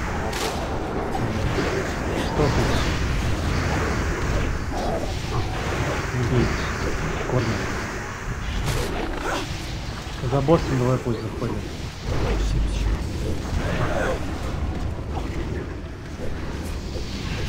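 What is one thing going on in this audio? Magic spells whoosh and blast in a noisy fantasy battle.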